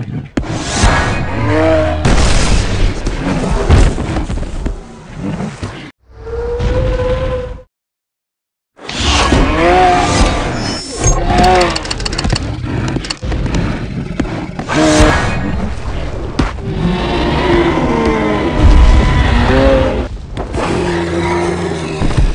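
Creatures roar and bellow loudly.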